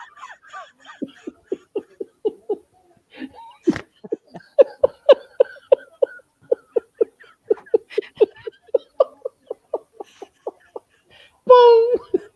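A woman laughs heartily over an online call.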